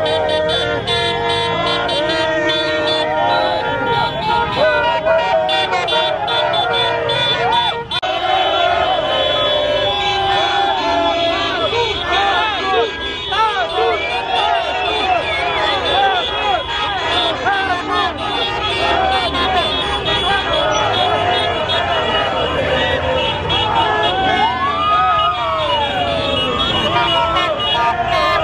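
Car horns honk repeatedly nearby.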